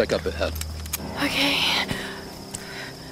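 A young woman answers briefly.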